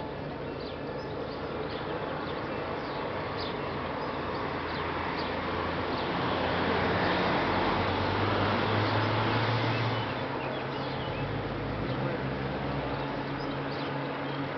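A train's engine hums and rumbles steadily while standing.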